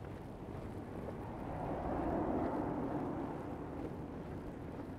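A car drives past on a snowy street.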